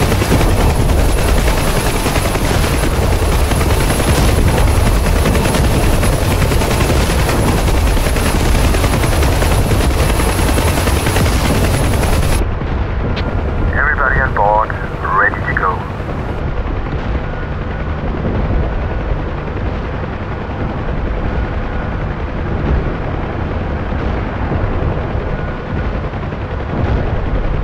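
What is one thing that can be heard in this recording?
A helicopter's rotor thumps and roars steadily close by.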